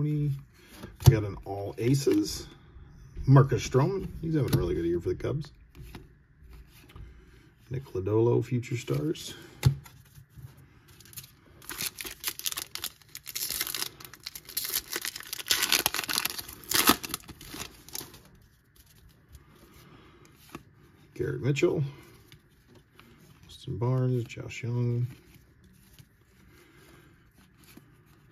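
Trading cards slide against each other as they are flipped through.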